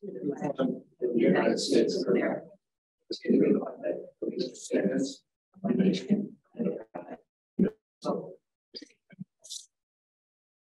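An adult speaks through an online call.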